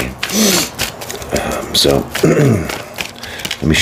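Playing cards riffle and snap in a man's hands.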